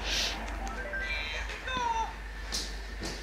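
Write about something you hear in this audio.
A handheld game console plays a short chiming jingle from its small speaker.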